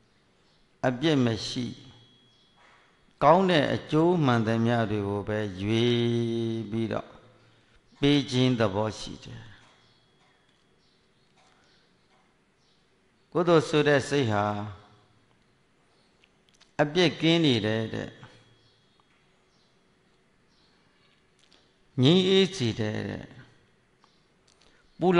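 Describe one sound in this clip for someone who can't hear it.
An elderly man chants slowly into a microphone in drawn-out phrases with long pauses.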